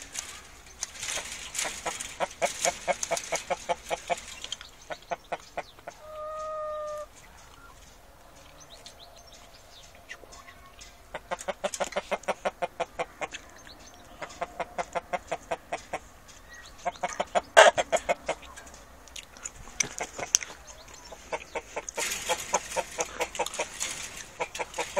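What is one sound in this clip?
Hens cluck rapidly and repeatedly up close.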